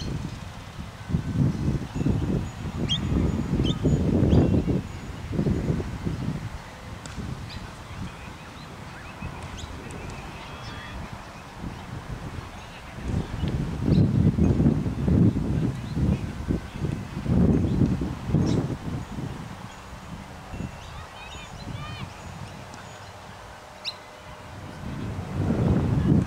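Wind gusts blow in bursts across an open field outdoors.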